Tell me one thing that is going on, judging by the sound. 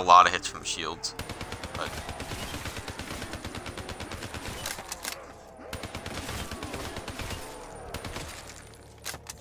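A rapid-fire gun shoots in fast bursts.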